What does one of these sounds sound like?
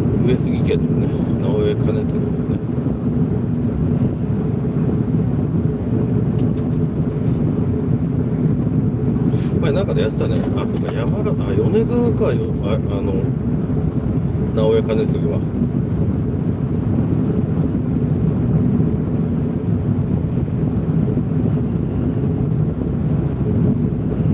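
Tyres roll on smooth pavement.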